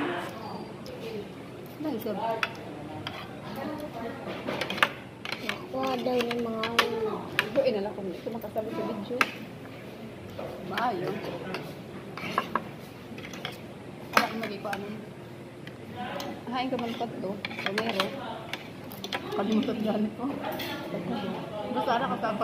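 A fork and knife scrape and clink on a plate.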